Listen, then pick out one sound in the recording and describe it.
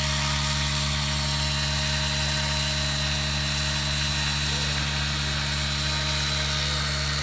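A model helicopter's engine and rotor whine and buzz steadily nearby.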